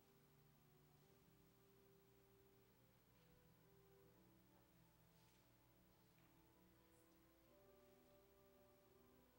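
An organ plays slow, sustained chords softly in a large echoing hall.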